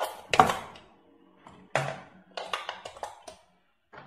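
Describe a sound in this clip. Batteries click into place in a toy.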